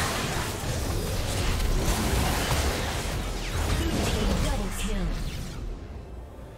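Video game battle effects burst and clash rapidly.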